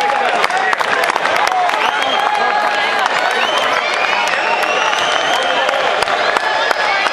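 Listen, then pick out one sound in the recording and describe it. A crowd cheers and shouts loudly in a large echoing arena.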